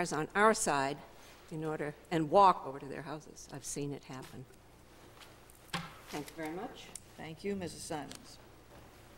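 An older woman speaks calmly into a microphone.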